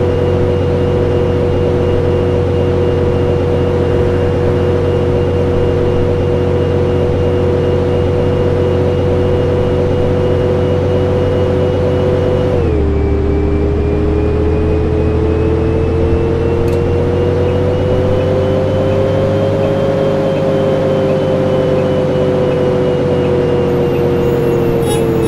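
A bus engine hums steadily and changes pitch as the bus shifts gear and speeds up.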